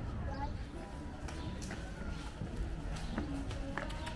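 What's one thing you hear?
Footsteps of several people walk on paving.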